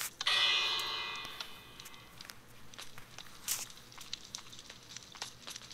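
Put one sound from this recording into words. Footsteps tap on stone in a game.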